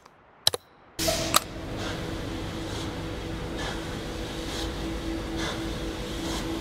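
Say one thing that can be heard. A mechanical engine hums steadily and loudly.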